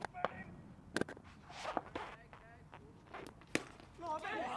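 A ball cracks off a stick.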